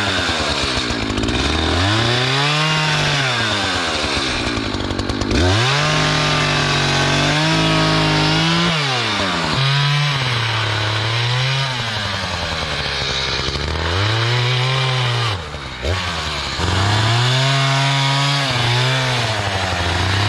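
A chainsaw engine revs up and down as it cuts into wood, close by.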